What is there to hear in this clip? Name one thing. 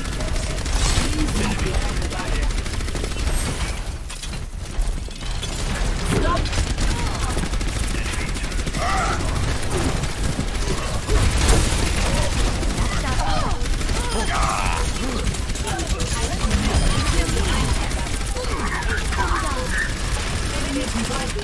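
Rapid gunfire rattles continuously.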